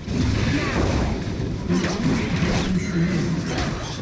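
Fantasy game spell effects whoosh and crackle during a fight.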